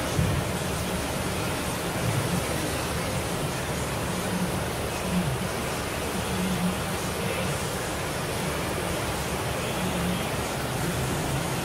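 Milking machines hum and hiss steadily.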